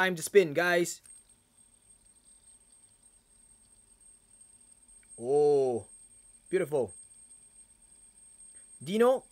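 A metal fidget spinner whirs steadily.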